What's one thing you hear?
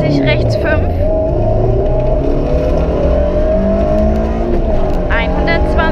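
Gravel rattles under the car's tyres.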